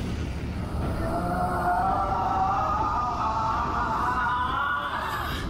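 A ghostly woman lets out a wavering, eerie wail that grows louder.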